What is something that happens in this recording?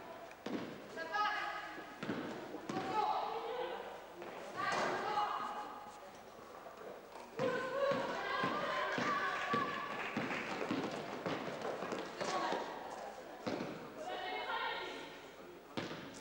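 Young women shout and call out in a large echoing hall.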